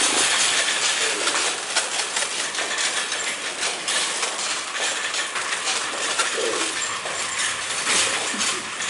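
Footsteps clatter on a hard floor in an echoing corridor.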